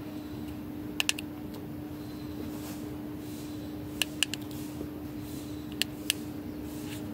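Buttons on a car key click sharply.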